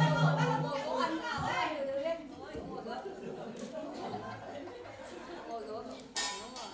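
A plucked lute plays a melody.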